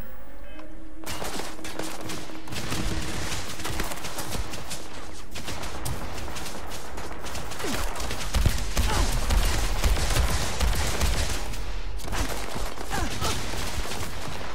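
Rapid gunfire and laser blasts crackle in a noisy battle.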